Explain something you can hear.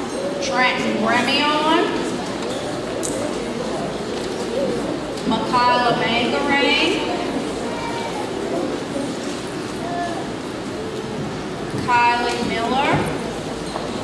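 A woman reads out names through a loudspeaker in a large echoing hall.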